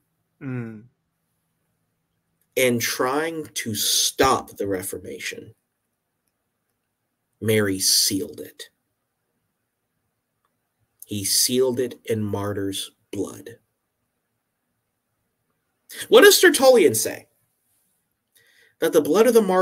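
A man speaks calmly in short phrases over an online call, with pauses between them.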